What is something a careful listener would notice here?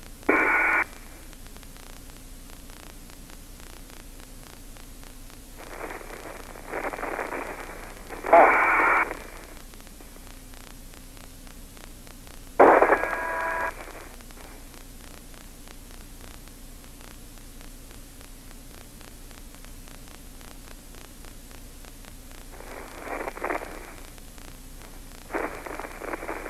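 A man speaks in short, calm bursts over a crackly, thin radio link.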